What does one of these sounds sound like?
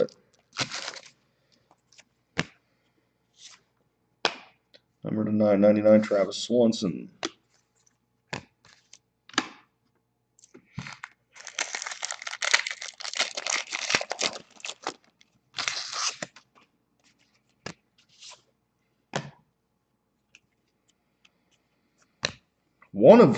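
Trading cards rustle and flick between hands.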